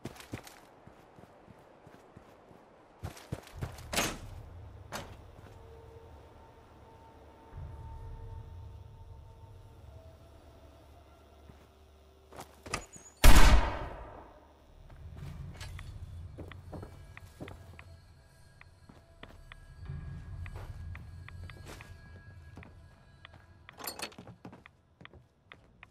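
Footsteps crunch over dry ground and gravel.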